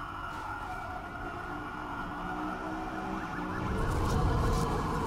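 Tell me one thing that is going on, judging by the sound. A sports car engine hums and revs, growing louder.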